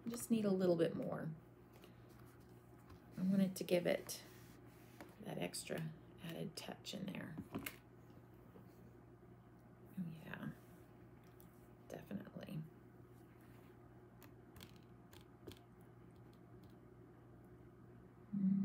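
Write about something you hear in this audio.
A woman talks calmly into a close microphone.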